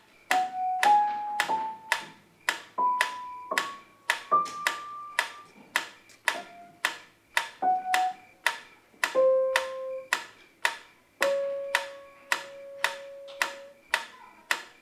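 A piano plays slow single notes up close.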